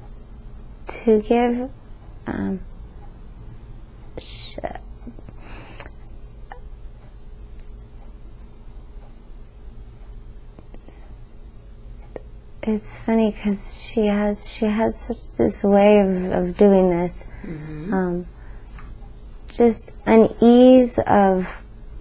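A woman speaks slowly in a weak, strained voice close by.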